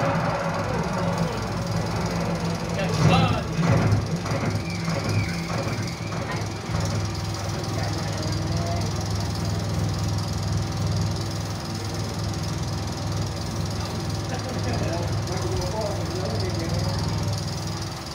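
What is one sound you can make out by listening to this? A film projector whirs and rattles steadily close by.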